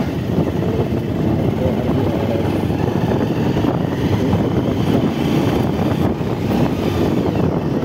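A motorbike engine runs steadily up close.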